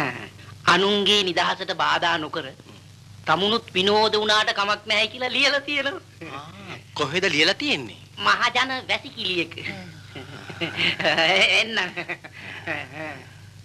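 A young man answers with animation, close by.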